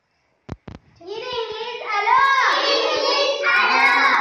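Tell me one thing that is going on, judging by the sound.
A group of young children sing together loudly in a room.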